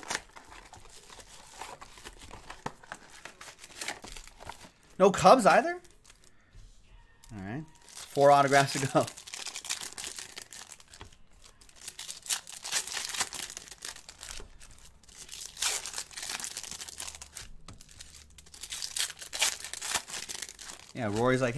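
Plastic wrappers crinkle and tear as packs are opened.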